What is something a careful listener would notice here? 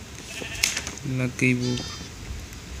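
A sheep bleats twice.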